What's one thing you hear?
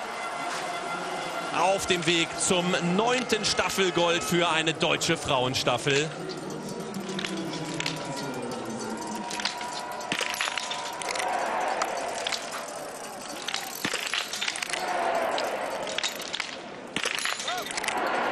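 A crowd cheers and murmurs outdoors.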